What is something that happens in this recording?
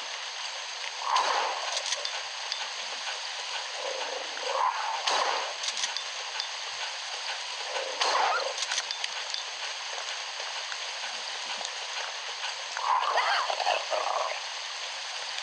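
A winged creature screeches in short bursts.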